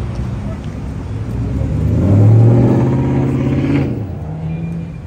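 A car's engine revs loudly and roars as it passes close by.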